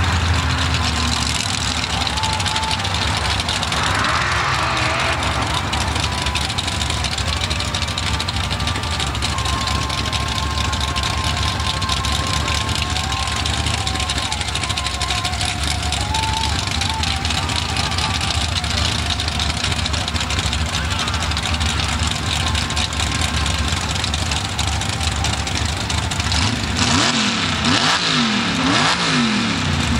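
A truck engine roars in the distance, revving up and down.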